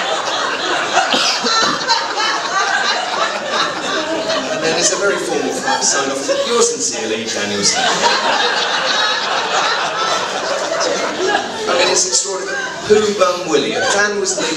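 A young man speaks into a microphone, heard through loudspeakers in an echoing room.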